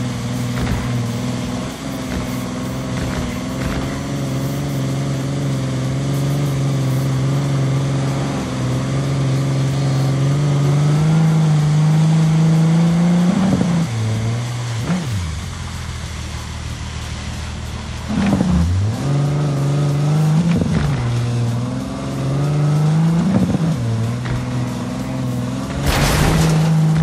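A car engine roars, rising in pitch as it speeds up and dropping as gears shift.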